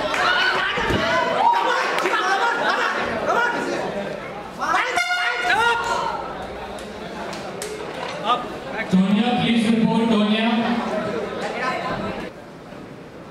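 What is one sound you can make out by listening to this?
A crowd shouts and cheers in a hall.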